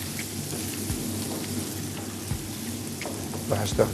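Vegetables sizzle and stir in a hot pan.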